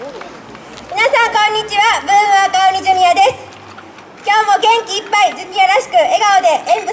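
Young women shout and chant together loudly outdoors.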